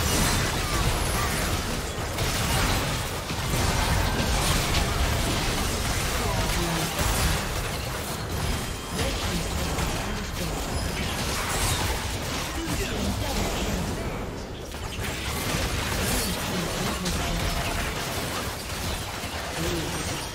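Spell blasts and sword hits clash in a fast game battle.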